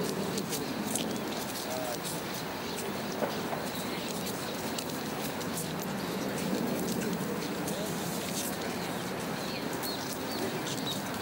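A crowd of men and women murmurs and chats quietly outdoors.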